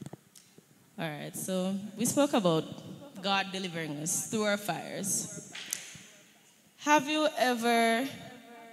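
Young women sing together through microphones.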